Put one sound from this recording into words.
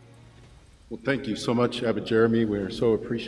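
A second man speaks through a microphone.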